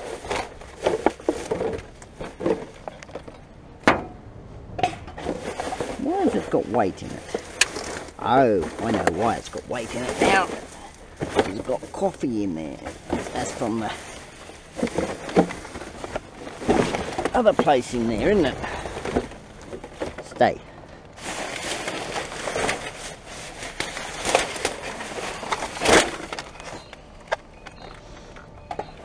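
Plastic bags and wrappers rustle and crinkle as hands dig through rubbish.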